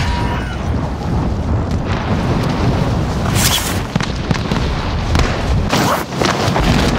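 Wind rushes loudly.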